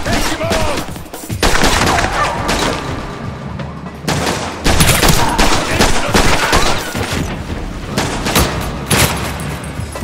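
Gunshots crack repeatedly with a ringing echo.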